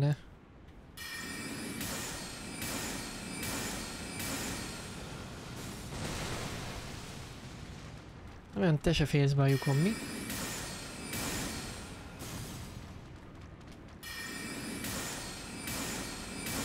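Magic spells whoosh and shimmer in a game.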